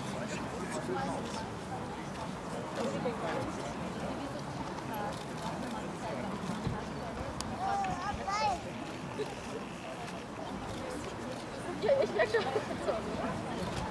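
Horses' hooves thud softly on grass.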